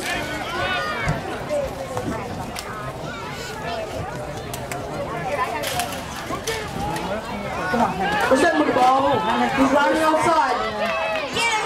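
A crowd of spectators nearby talks and calls out, growing into loud cheering.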